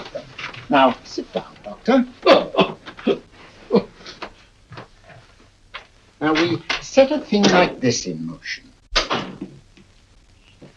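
An elderly man speaks calmly and gravely nearby.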